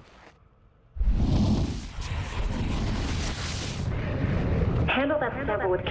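A loud rushing blast roars and fades.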